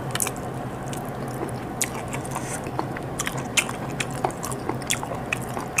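Meat tears apart in a woman's hands.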